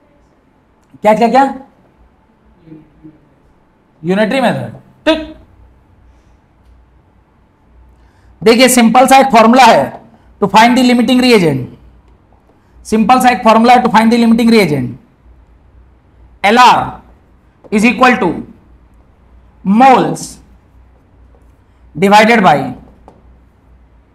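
A man speaks in short bursts like a teacher explaining, close by.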